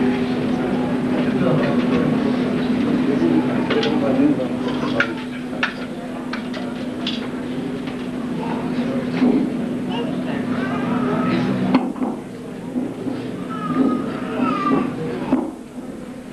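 A crowd of people murmurs in the room.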